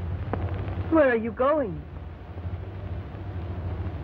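A woman speaks softly.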